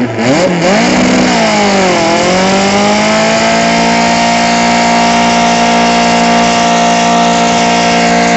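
A car engine revs loudly, rising and falling, then holds a steady high roar.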